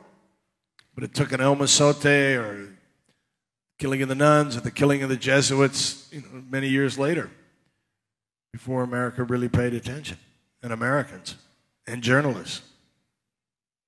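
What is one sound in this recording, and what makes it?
An older man speaks calmly and thoughtfully into a headset microphone.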